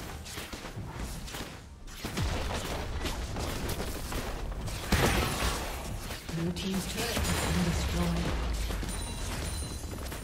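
Magic spells crackle and burst during a fantasy battle.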